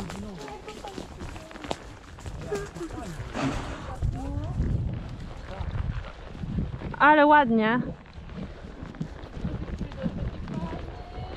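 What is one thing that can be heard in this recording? Horses' hooves thud on soft ground at a walk.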